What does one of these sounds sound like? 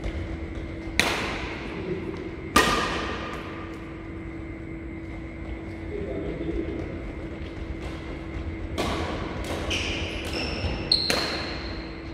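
Shuttlecocks are struck with rackets, with sharp echoing smacks in a large hall.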